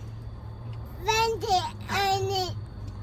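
A young girl giggles happily up close.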